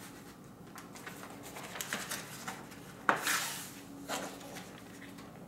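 A sheet of paper rustles and flaps as it is handled.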